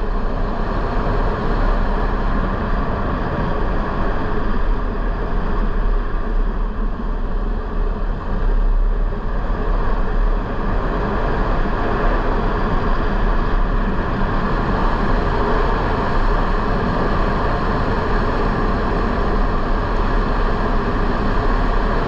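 A motorcycle engine hums steadily close by.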